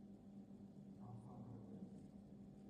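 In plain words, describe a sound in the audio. A woman speaks softly and quietly, close by.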